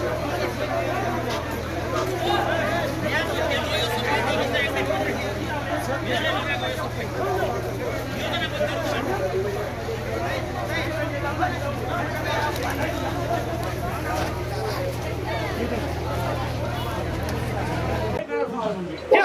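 A crowd of men talks and argues outdoors.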